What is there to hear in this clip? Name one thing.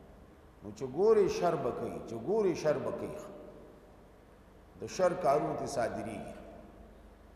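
An older man recites in a melodic chanting voice into a microphone, with a slight echo.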